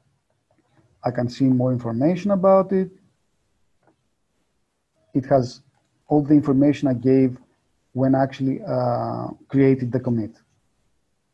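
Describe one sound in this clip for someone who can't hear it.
A man speaks calmly into a close microphone.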